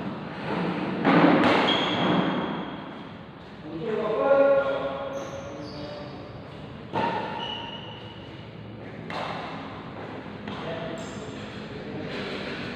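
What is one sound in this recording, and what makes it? Badminton rackets smack a shuttlecock in an echoing hall.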